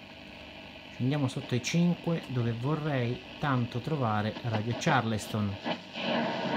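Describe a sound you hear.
An old radio squeals and warbles with rising and falling tones between stations.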